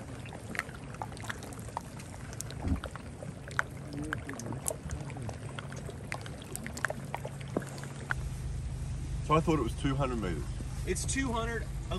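Water laps gently against chunks of ice.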